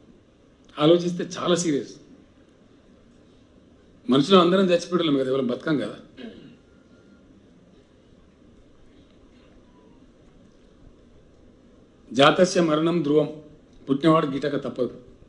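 An older man speaks calmly into a microphone, with long pauses.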